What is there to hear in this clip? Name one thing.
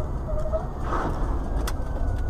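A truck crashes with a loud thud.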